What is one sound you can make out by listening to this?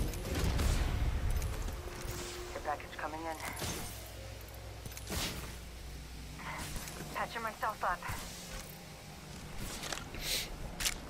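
Soft clicks and item sounds come from a video game menu.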